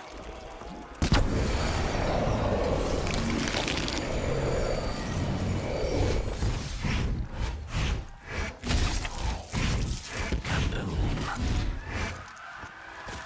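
A weapon lets out a loud roaring, crackling blast of energy.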